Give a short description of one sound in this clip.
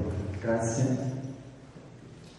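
An elderly man speaks into a microphone in a hall with a slight echo.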